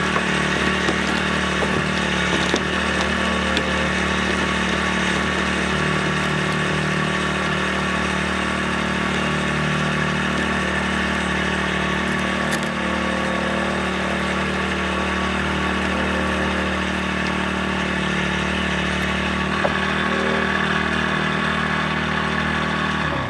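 A heavy log scrapes slowly across wooden boards.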